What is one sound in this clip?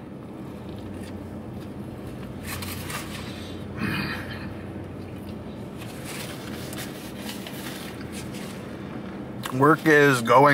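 A man chews food with his mouth closed.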